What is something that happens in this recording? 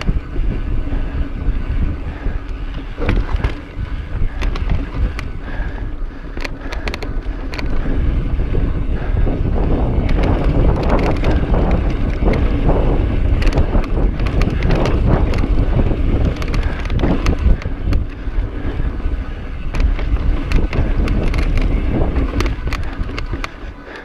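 Wind buffets loudly and steadily past the rider.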